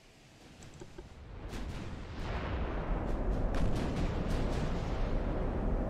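Heavy naval guns boom repeatedly over a deep rumble.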